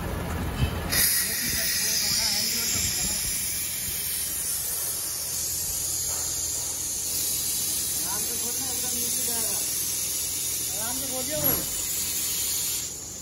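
Compressed air hisses steadily.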